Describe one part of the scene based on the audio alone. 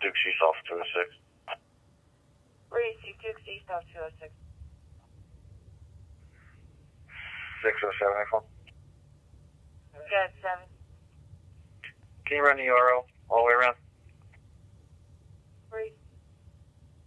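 Voices of dispatchers and officers come through a scanner's small, tinny speaker in short bursts of radio chatter.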